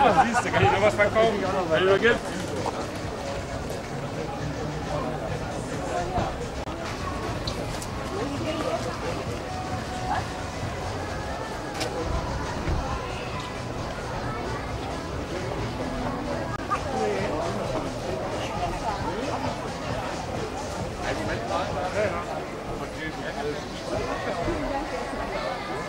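A lively outdoor crowd murmurs and chatters nearby.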